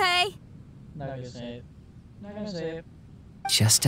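A young woman asks a question with concern.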